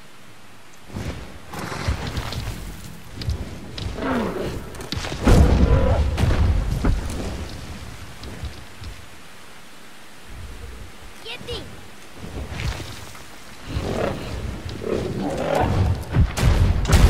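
A large creature's wings flap and beat heavily.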